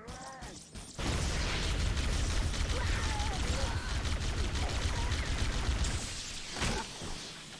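Energy weapons fire in rapid bursts with loud blasts.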